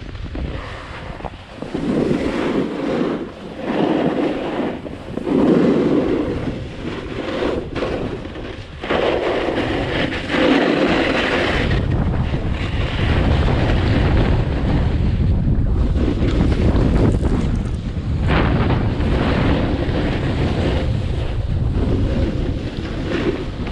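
Skis scrape and hiss over packed snow at speed.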